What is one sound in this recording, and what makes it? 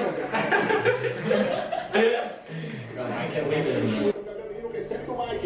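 Young men talk and laugh close by.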